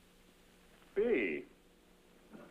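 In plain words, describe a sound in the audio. A woman speaks briefly in a room.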